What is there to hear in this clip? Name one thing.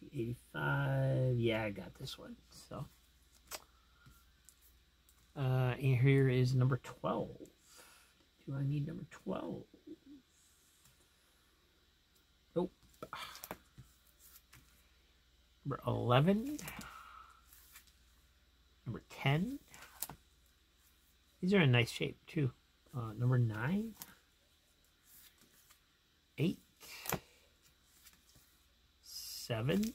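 Plastic comic sleeves rustle and crinkle as they are handled.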